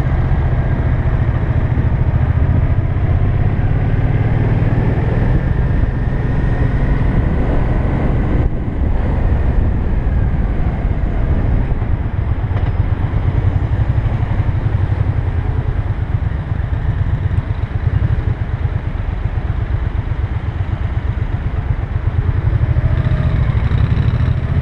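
A motorcycle engine hums steadily up close while riding.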